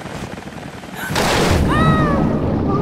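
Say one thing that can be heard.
Water splashes heavily.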